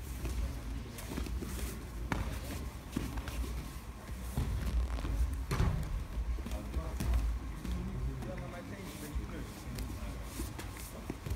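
Bare feet squeak and slide on mats.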